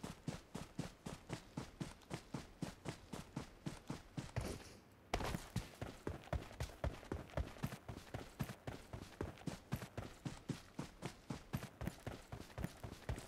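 Quick footsteps run steadily over grass.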